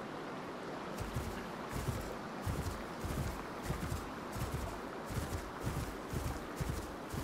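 Heavy footsteps thud steadily through grass.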